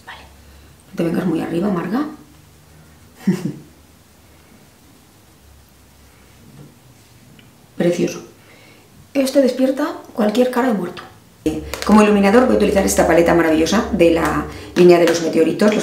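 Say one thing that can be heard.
A middle-aged woman talks calmly and close to a microphone.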